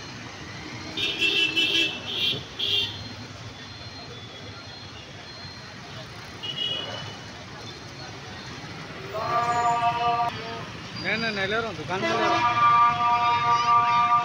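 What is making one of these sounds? Vehicle horns honk repeatedly.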